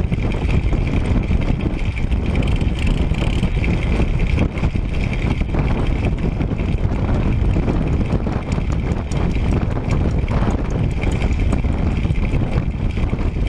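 Bicycle tyres hum on an asphalt road.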